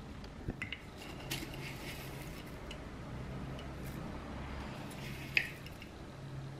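A spoon scoops dry cereal from a glass jar.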